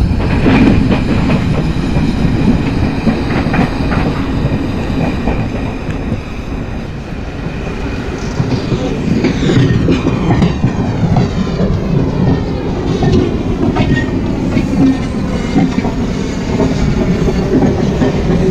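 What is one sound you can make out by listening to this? An electric train rumbles steadily along the tracks.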